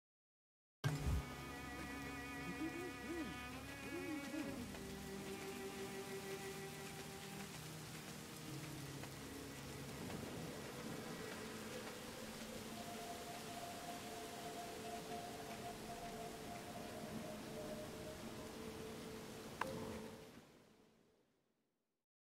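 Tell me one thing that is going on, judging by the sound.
Soft, steady game music plays.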